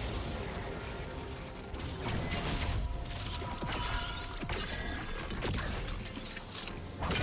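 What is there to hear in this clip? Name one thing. Magic spell effects whoosh and chime in quick bursts.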